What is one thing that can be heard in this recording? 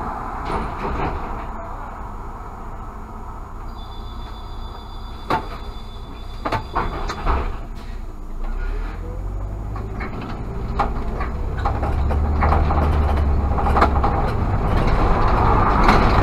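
Tyres rumble over cobblestones.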